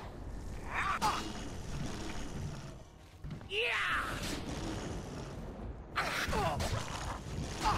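A monster growls.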